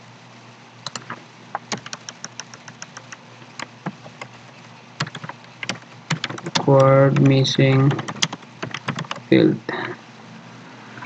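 Keys clack on a keyboard in quick bursts.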